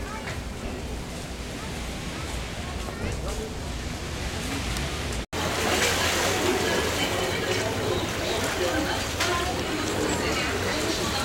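Small waves wash gently against a shore.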